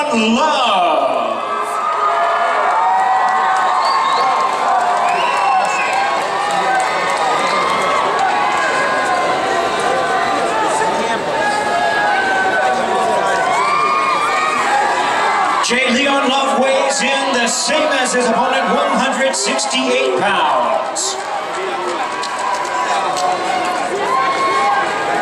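A large crowd chatters and cheers in a big echoing hall.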